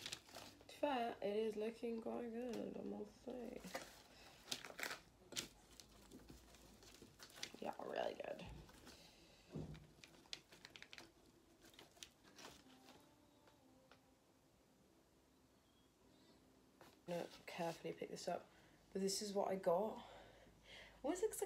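Paper crinkles and rustles under handling.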